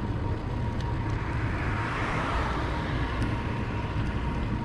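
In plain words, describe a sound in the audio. A car drives by on the road.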